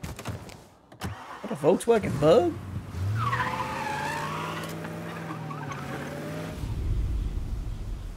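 A car engine starts and revs as the car drives off.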